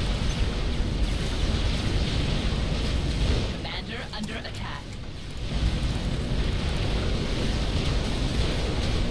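Explosions and gunfire rumble in a steady battle din.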